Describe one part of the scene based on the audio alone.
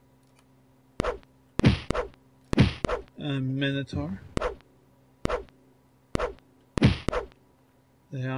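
Sword blows land with sharp, heavy thuds.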